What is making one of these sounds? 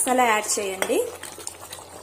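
A ladle scrapes and stirs thick food in a metal pot.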